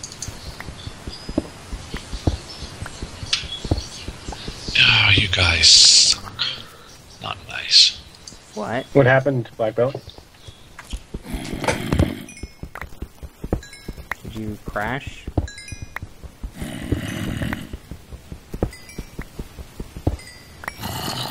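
A pickaxe chips and knocks at stone in quick taps.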